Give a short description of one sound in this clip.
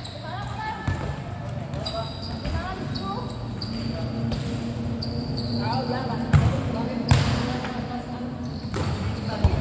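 A football thuds off a foot and echoes in a large covered hall.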